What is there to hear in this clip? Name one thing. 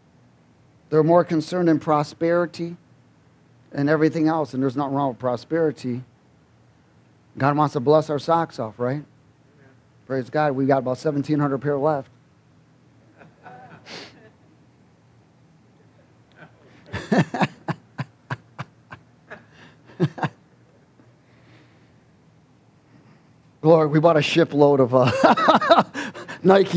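A man speaks calmly through a microphone in short phrases with pauses.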